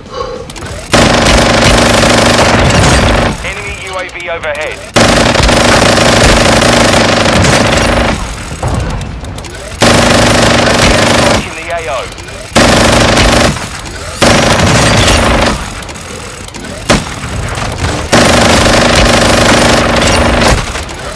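A minigun fires long, roaring bursts in rapid fire.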